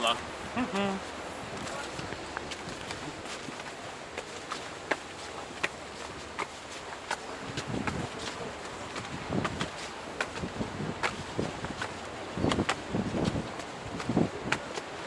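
Footsteps scuff on stone steps.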